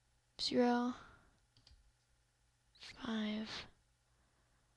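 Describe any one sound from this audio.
A short electronic game tone sounds twice.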